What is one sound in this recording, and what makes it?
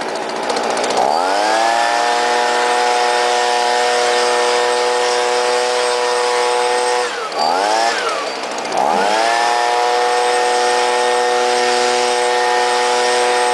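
A leaf blower motor revs up and whines steadily, briefly dropping and revving up again.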